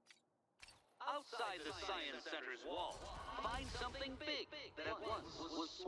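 Laser guns fire in loud rapid bursts.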